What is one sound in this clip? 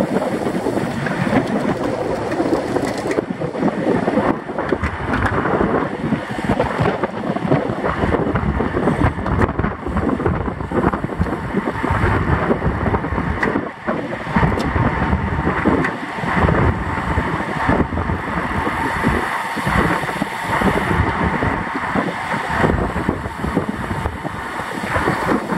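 Wind buffets loudly past the cyclist at speed.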